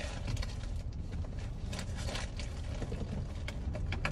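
Cars drive past, whooshing by.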